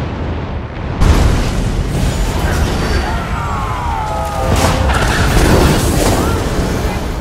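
Magic spells crackle and boom in a game battle.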